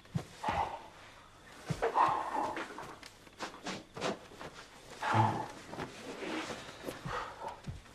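Bedding rustles as a man leans on a bed.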